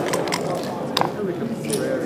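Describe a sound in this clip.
A game clock's button clicks.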